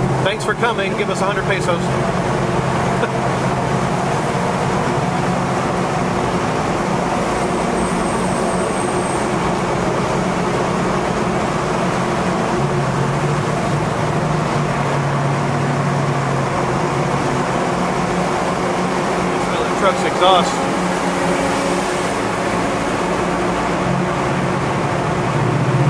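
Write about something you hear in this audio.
A car engine hums steadily while driving through an echoing tunnel.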